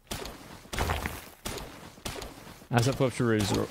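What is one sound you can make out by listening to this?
A pickaxe strikes rock with sharp, ringing clinks.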